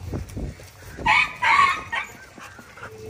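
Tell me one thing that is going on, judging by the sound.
Dogs yelp and whine close by.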